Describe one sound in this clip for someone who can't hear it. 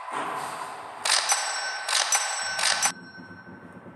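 Game chimes ring as a score tallies up.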